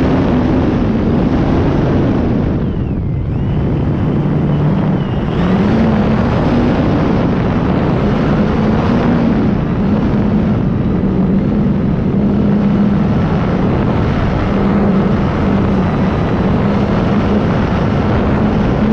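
A small aircraft's engine drones steadily, rising and falling in pitch.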